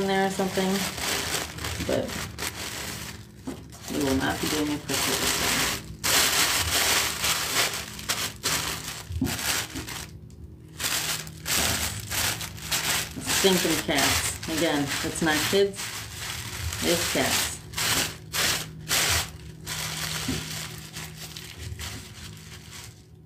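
Tissue paper rustles and crinkles as it is scrunched.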